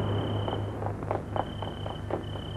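Footsteps run quickly across hard ground.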